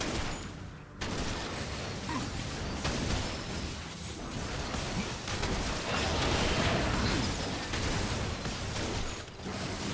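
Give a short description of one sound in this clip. Magic blasts and hits crackle and boom in a fast-paced game fight.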